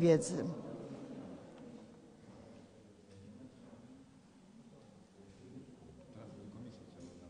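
An older woman reads aloud calmly through a microphone.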